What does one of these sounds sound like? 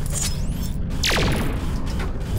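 A laser zaps with a falling whoosh.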